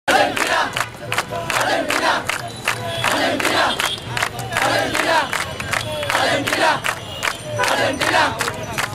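A crowd of young men chants loudly in rhythm outdoors.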